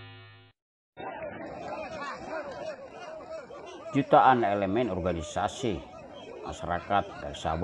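A large crowd of men chants and shouts together outdoors.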